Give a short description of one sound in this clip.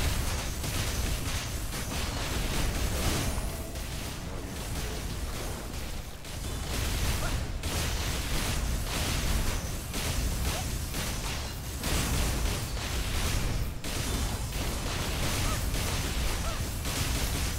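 Magic blasts and sword strikes crash and boom in quick succession.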